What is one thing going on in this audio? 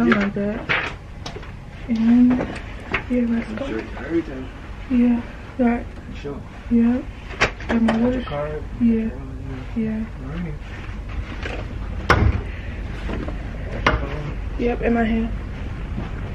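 A young woman talks close to a phone microphone.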